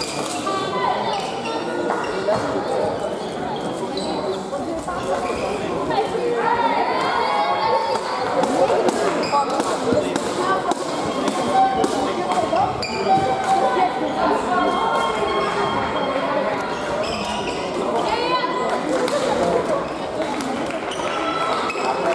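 Many people chatter throughout a large echoing sports hall.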